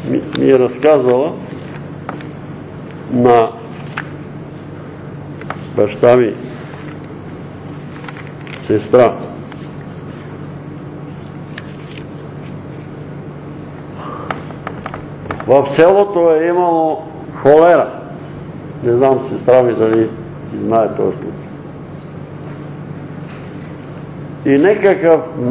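An elderly man speaks slowly with long pauses, in a room with some echo.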